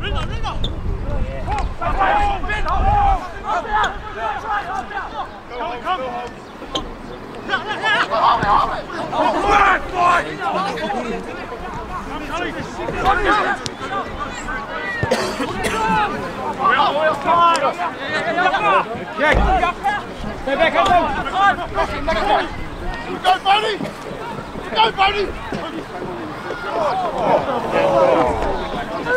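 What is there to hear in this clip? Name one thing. Young men shout and call out to each other on an open field outdoors.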